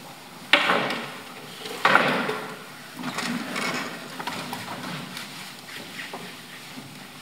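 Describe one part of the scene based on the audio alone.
Young girls speak and call out loudly in an echoing hall.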